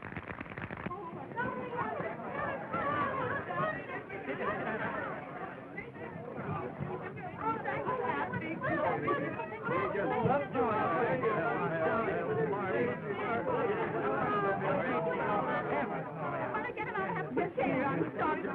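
A crowd of men and women talk and shout excitedly all at once.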